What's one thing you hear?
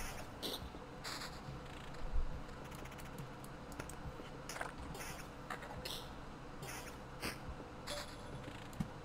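Sharp game sound effects of blows clash in quick bursts.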